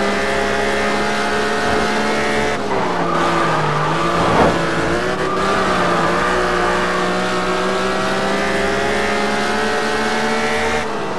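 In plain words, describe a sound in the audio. A car engine roars steadily at high revs, dipping briefly as the car takes a bend.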